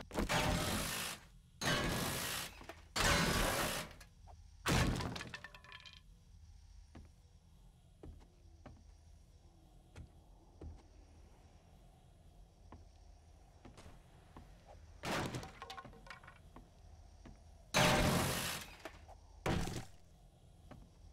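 A spray gun hisses in short loud bursts.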